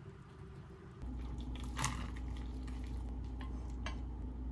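Broth pours from a pot into a bowl.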